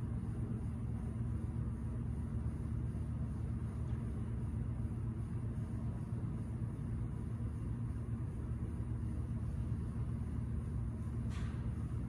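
Ventilation hums steadily and low.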